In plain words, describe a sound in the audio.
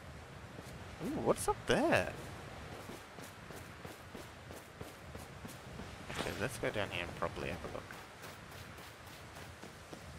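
Footsteps patter steadily on soft ground.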